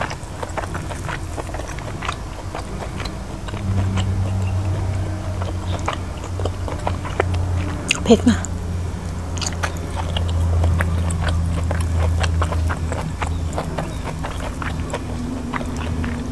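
A young woman chews food with loud, wet mouth sounds close by.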